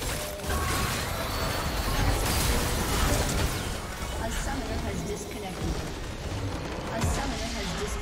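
Magic spells crackle and clash in a busy fight.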